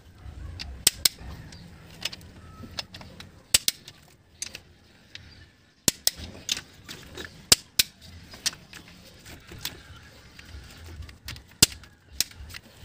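A ratchet wrench clicks as it tightens bolts.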